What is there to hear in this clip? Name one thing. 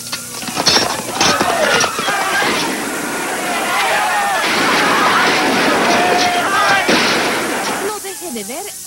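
A crowd shouts and scrambles in commotion.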